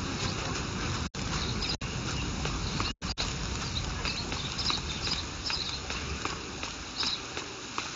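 Light footsteps patter quickly on grass and stone.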